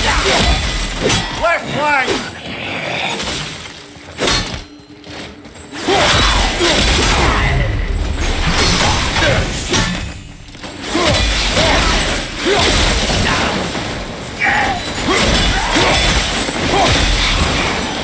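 Metal weapons clash and clang against a shield.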